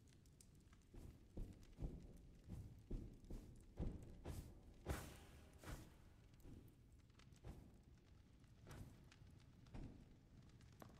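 Slow footsteps echo on a stone floor.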